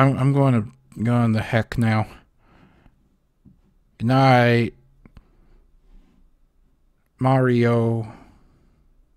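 A man sings out long, drawn-out notes in short bursts.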